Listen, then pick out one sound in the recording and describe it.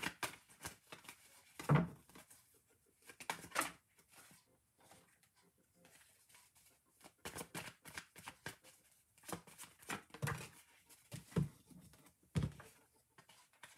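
Playing cards rustle and slap as they are handled.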